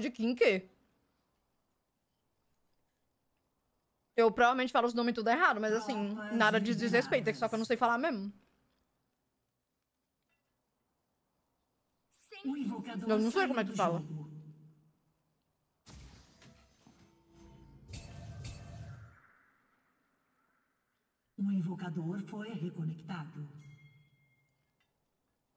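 A young woman talks and sings close to a microphone, in bursts with pauses.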